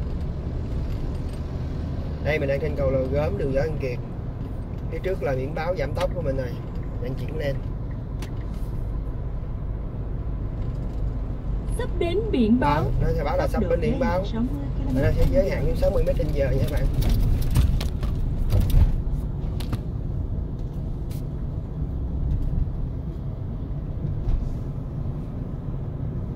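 A car's engine and tyres rumble steadily on the road.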